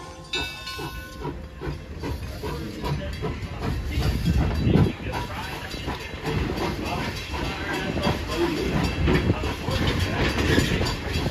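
A steam locomotive chuffs rhythmically as it rolls slowly past.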